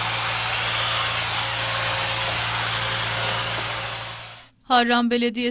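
A pressure sprayer hisses steadily.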